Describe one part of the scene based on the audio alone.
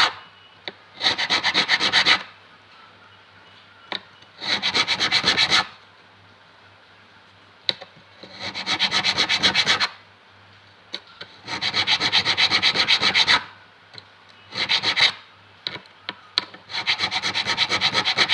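A metal file rasps in quick short strokes across a guitar fret.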